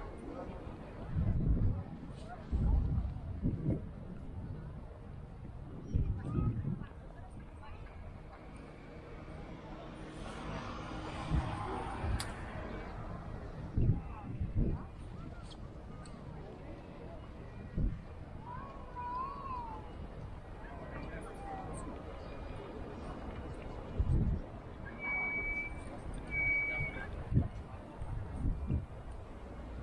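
People talk faintly in the distance.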